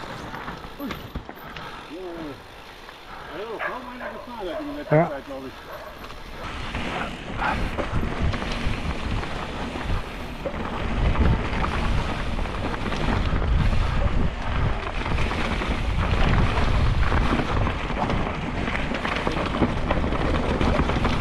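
Bicycle tyres roll and crunch over leaves and dirt.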